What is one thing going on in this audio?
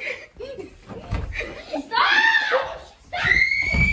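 Bare feet thump and run across a wooden floor.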